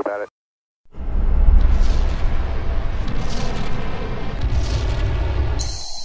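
A rocket engine roars loudly at launch.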